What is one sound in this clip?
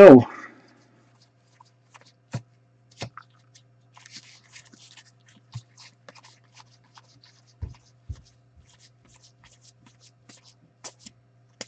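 Trading cards softly slide and flick against each other.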